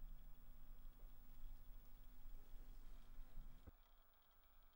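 A piano plays a gentle melody.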